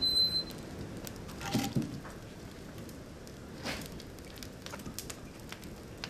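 Split logs knock and thud as they are tossed into a wood stove.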